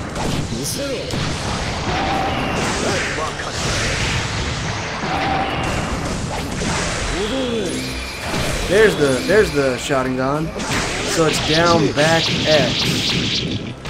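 Fighting game hits and blasts crackle and thud.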